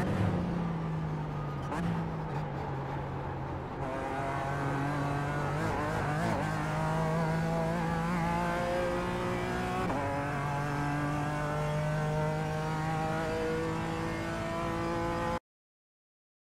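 A race car engine roars and revs up through the gears.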